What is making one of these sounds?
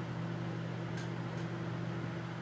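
Metal tweezers clink against a wire rack.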